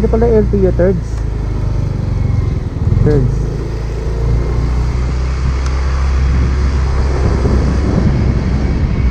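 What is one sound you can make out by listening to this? A scooter engine hums steadily close by.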